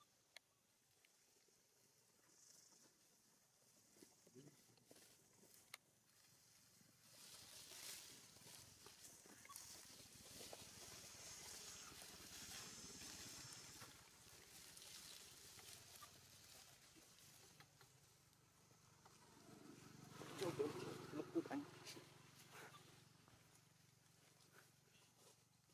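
Monkeys rustle through dry leaves.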